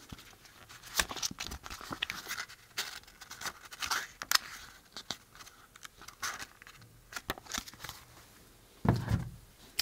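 Paper pages flutter and rustle as a booklet is flipped through.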